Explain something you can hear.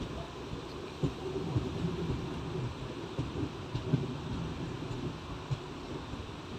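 Train wheels knock over rail joints.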